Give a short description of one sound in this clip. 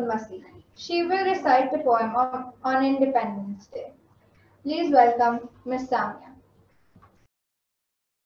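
A girl speaks clearly into a microphone.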